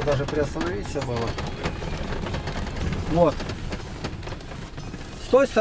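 A car engine rumbles steadily inside a moving car.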